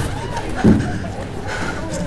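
A young woman breathes heavily and gasps nearby.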